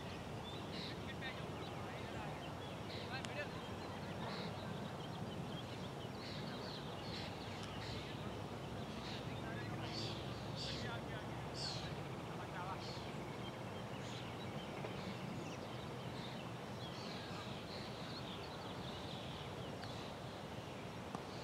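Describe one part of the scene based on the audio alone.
Wind blows steadily across an open field.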